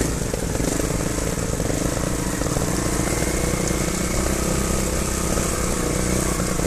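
A dirt bike engine putters close by at low revs.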